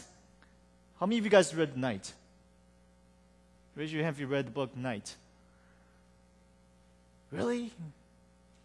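A man speaks calmly through a microphone, with pauses between phrases.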